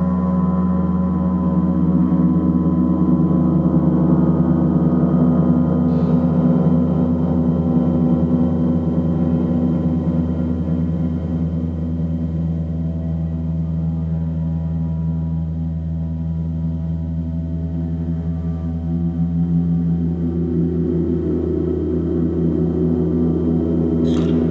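A large gong hums and swells in a deep, steady drone, echoing in a roomy hall.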